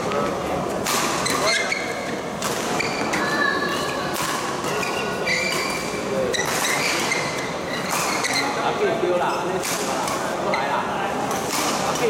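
Rackets smack a shuttlecock back and forth in an echoing hall.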